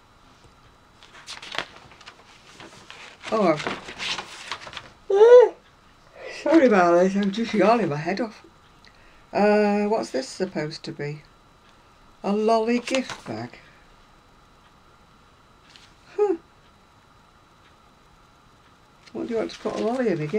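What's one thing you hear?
Magazine pages rustle and flap as they are turned.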